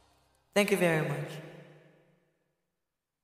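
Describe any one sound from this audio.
A young woman sings a short, falling phrase close to a microphone, with a long echo fading away.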